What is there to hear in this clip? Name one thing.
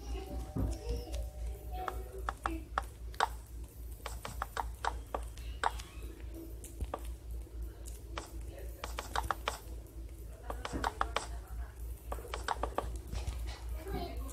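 Wooden blocks are placed in a game with soft, quick knocks.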